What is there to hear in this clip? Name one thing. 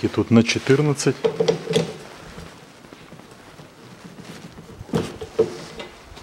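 A hand tool clicks as it turns a bolt.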